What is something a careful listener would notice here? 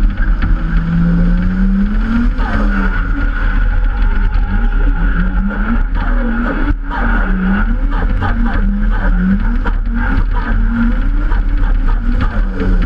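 A car engine revs up and down as the car drives fast along a winding road.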